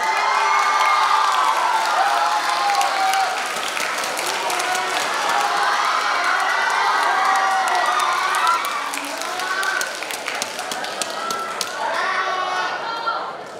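A crowd of young people cheers and screams loudly in a large hall.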